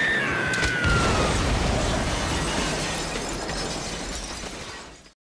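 Wind rushes loudly past a body falling through the air, slowly fading.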